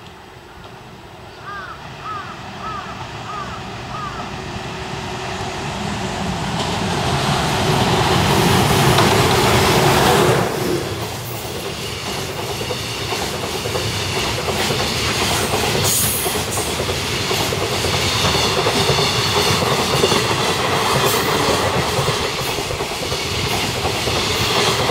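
A freight train approaches and roars past close by.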